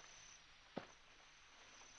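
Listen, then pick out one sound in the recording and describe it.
Tall grass rustles as a group of men moves through a field.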